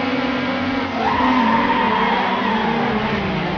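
Tyres screech as a car speeds off.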